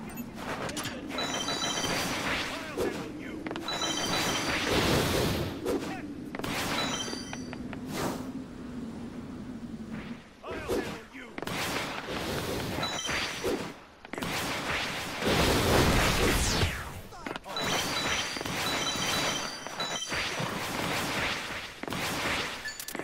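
Game sound effects whoosh and burst as a figure dashes and strikes.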